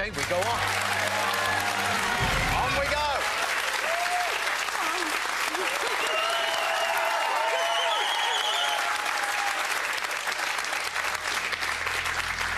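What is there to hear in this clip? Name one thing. An audience cheers and whoops excitedly.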